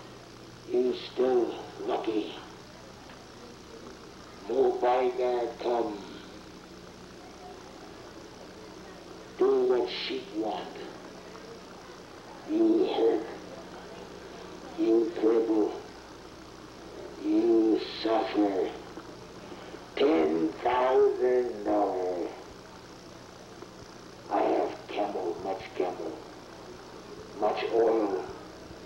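A man speaks close to a microphone in short phrases with pauses between them.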